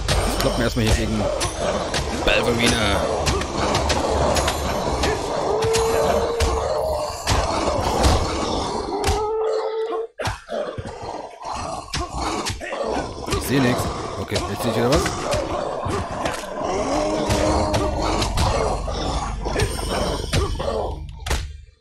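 Swords clash and strike creatures in quick blows.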